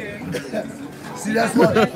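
A young man laughs and speaks excitedly up close.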